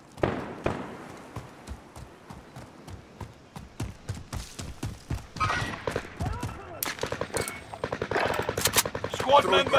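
Footsteps run quickly over dirt and concrete.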